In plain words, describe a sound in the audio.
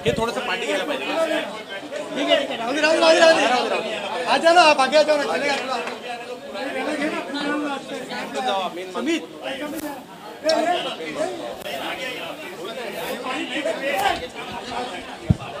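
A crowd of men chatters and calls out loudly nearby.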